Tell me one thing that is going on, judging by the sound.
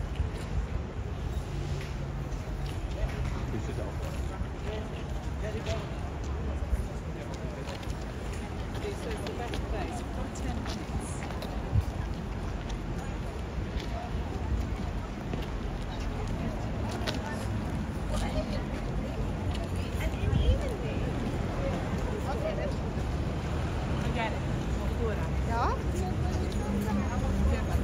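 A crowd of people chatters outdoors, with voices all around.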